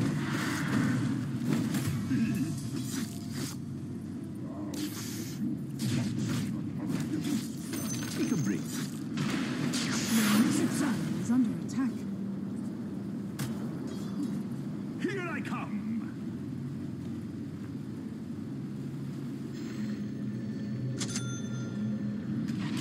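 Magic spells crackle and whoosh in a fantasy battle game.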